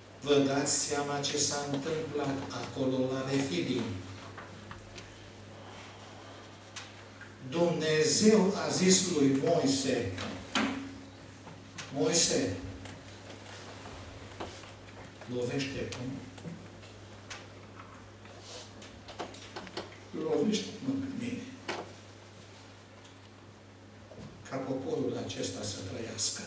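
An elderly man speaks slowly and earnestly through a microphone, with pauses, in a room with a slight echo.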